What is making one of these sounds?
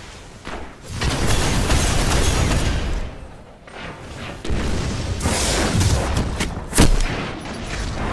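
Rapid gunfire and energy blasts crackle in loud bursts.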